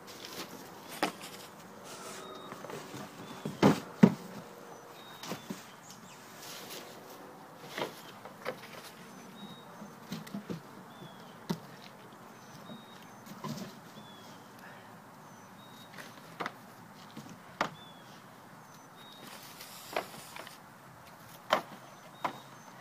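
Cardboard boxes thump and rustle as a man handles them outdoors.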